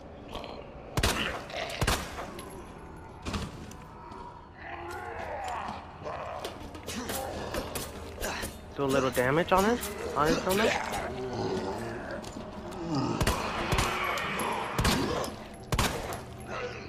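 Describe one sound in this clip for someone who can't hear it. Gunshots ring out loudly in short bursts.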